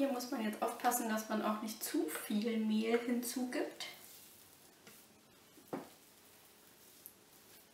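A spatula scrapes dough from a bowl.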